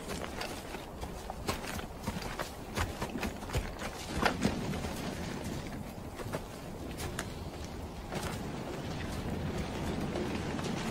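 Dry leaves and branches rustle and crunch underfoot as men move through brush.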